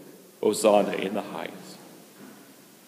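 A man chants a short phrase through a microphone in a large echoing hall.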